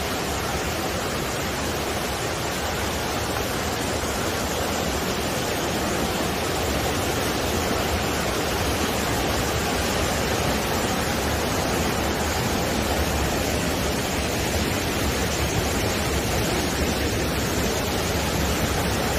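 A mountain stream rushes loudly over rocks nearby.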